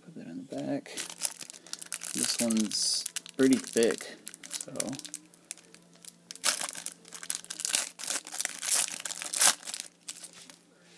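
A plastic wrapper crinkles and tears as it is pulled open.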